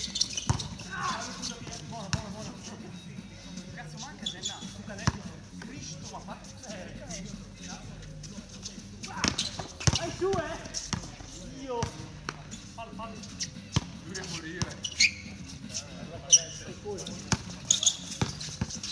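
A basketball bounces on an outdoor court.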